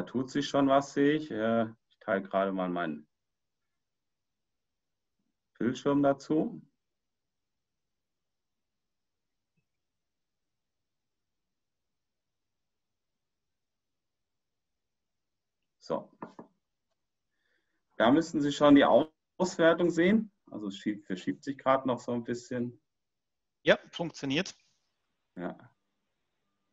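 A man talks calmly over an online call, in short bursts with pauses.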